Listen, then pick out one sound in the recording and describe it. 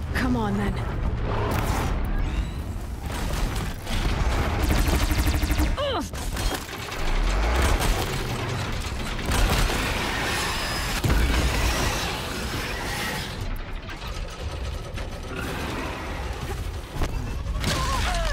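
A large machine creature stomps and roars nearby.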